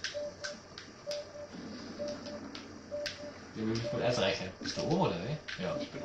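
A game's heartbeat sensor beeps in quick pairs, again and again.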